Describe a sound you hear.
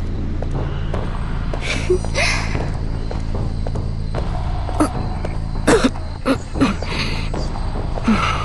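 Footsteps patter quickly over soft ground.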